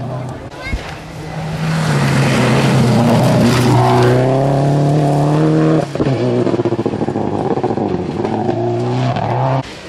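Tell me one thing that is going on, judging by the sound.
A rally car engine roars loudly as the car speeds past close by.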